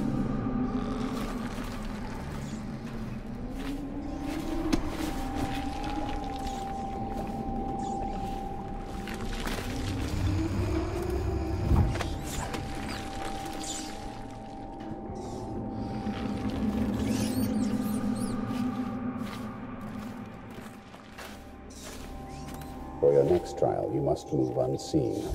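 Footsteps creak across wooden floorboards.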